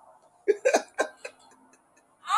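A man laughs softly close to a microphone.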